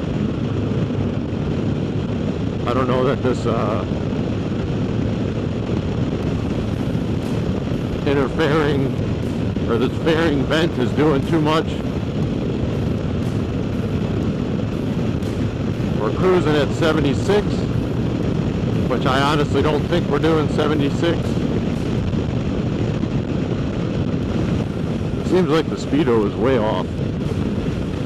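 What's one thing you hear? Wind rushes over the microphone.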